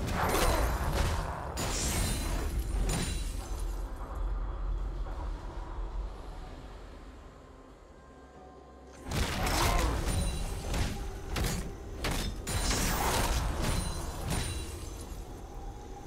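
Magic blasts whoosh and crackle in a fierce fight.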